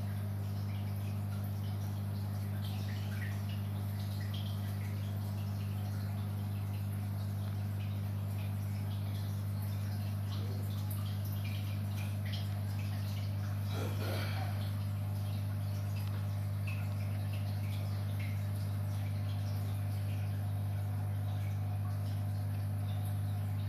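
An aquarium pump hums steadily and low.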